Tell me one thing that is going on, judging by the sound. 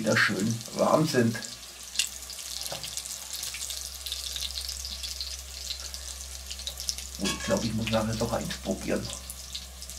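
Meatballs sizzle and crackle in hot oil.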